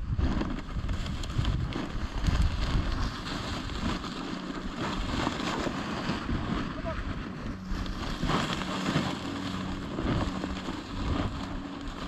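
Footsteps crunch and rustle through dry grass.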